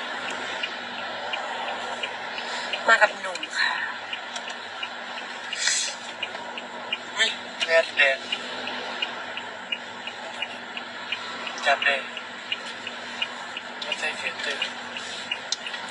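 A car engine hums steadily inside the cabin.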